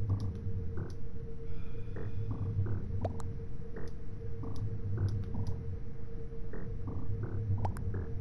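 Short electronic beeps sound one after another.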